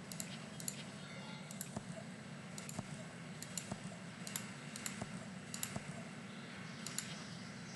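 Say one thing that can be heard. Short, bright game chimes ring out again and again.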